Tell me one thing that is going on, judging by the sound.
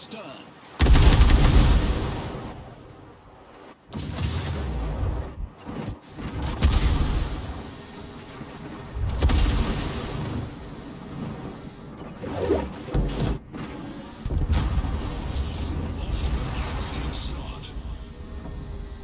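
Heavy naval guns boom in loud, deep blasts.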